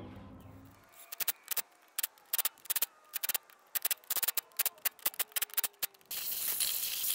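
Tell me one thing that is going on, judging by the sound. An impact wrench rattles in rapid bursts.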